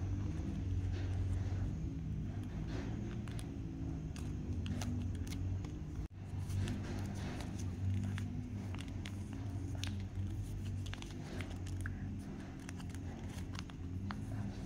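Crepe paper crinkles and rustles.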